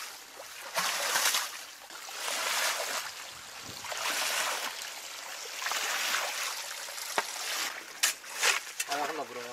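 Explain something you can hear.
A shovel scrapes and splashes through muddy water.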